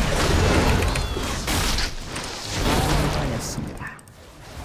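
Game spell and combat effects whoosh and clash.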